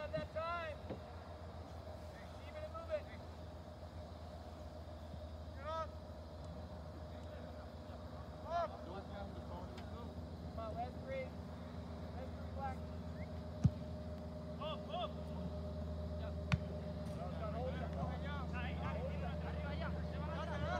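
Young players call out faintly in the distance across an open field.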